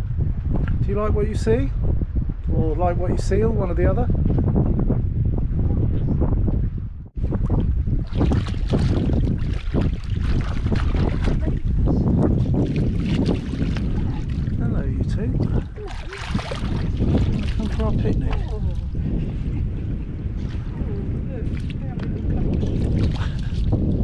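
Wind rumbles across the microphone outdoors on open water.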